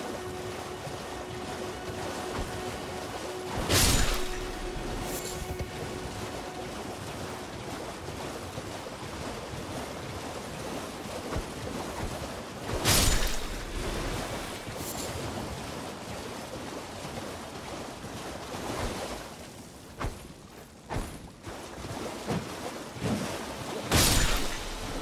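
Water splashes steadily as a horse gallops through shallows.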